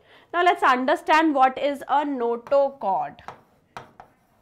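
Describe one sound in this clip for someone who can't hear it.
A young woman speaks clearly and with animation into a microphone.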